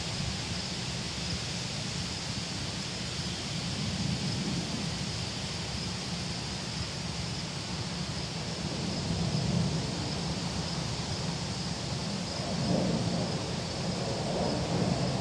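Wind rustles through leaves outdoors.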